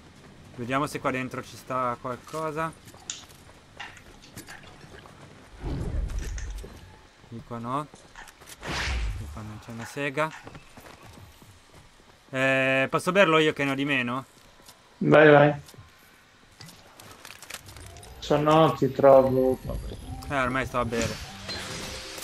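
A middle-aged man talks with animation close to a microphone, in short bursts.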